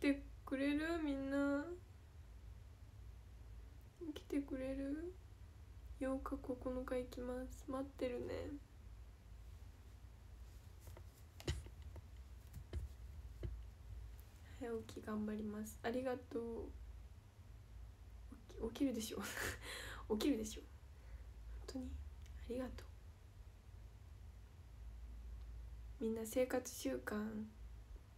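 A young woman speaks softly and calmly, close to a microphone.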